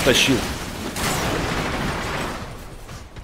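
Debris bursts apart in an explosion.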